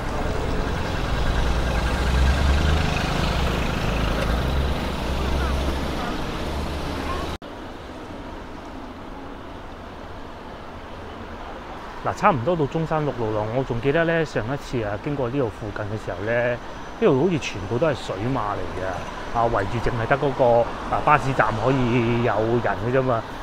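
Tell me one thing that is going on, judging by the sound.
City traffic hums along a street.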